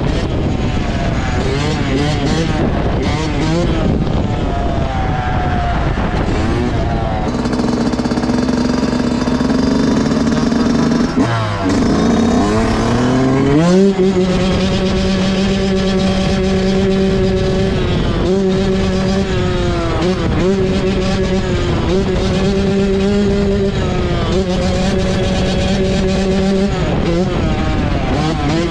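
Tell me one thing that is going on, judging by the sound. A dirt bike engine revs hard and then holds a steady high drone, close by.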